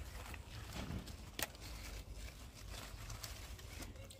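Garden shears snip through a thick stem.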